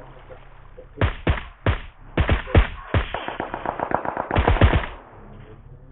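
Single sniper rifle shots crack loudly.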